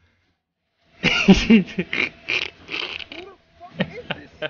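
A young man laughs loudly into a microphone.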